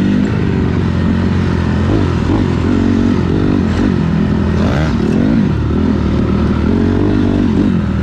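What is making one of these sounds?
Another dirt bike engine buzzes a short way ahead.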